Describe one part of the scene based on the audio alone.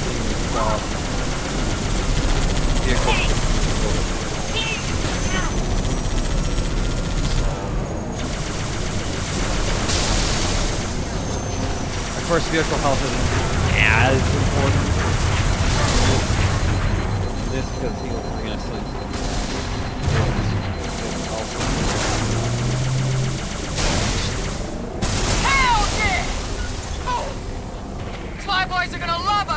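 A hovering vehicle's engine hums steadily as it speeds along.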